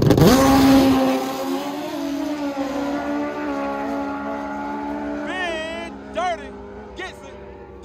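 A motorcycle races away and fades into the distance.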